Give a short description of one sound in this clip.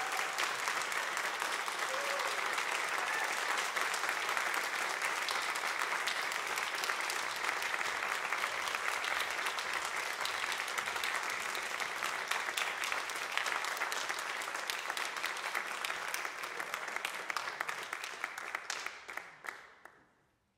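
An audience applauds in a large echoing hall, then the clapping dies away.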